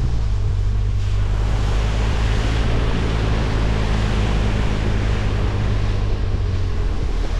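Tyres splash through muddy puddles.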